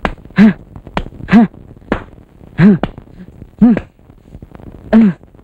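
A man lets out short, rising and falling vocal cries again and again.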